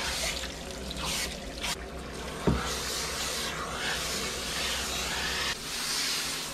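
Water sprays from a hose nozzle onto a dog's wet fur.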